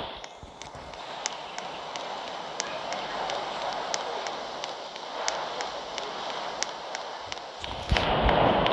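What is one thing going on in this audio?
Footsteps tap steadily along a path.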